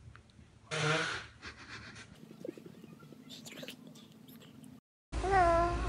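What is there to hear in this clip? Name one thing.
A baby fusses and whines.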